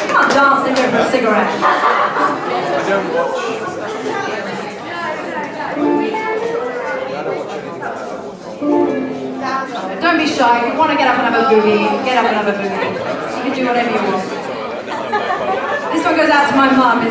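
An accordion plays along.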